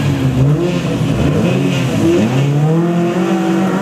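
Tyres crunch and spray gravel as a rally car pulls away.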